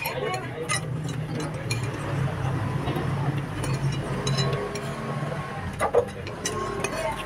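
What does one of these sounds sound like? A metal fork and spoon clink and scrape against a plate.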